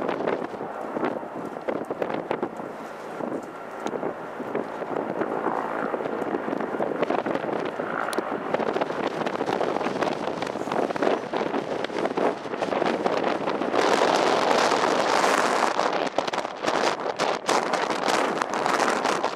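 A jet airliner's engines roar loudly as it rolls fast along a runway.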